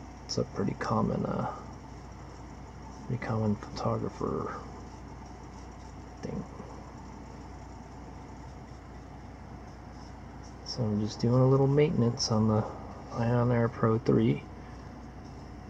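A small brush sweeps softly over a hard plastic surface.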